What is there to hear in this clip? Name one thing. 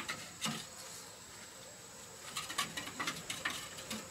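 A blade scrapes against wood.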